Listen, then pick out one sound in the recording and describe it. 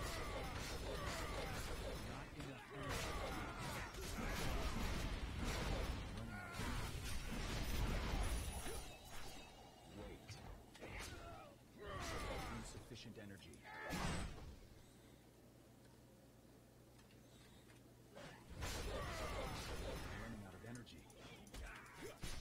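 Game spell effects whoosh and crackle in combat.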